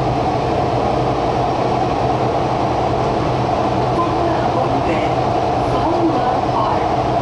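A train rumbles steadily along a track.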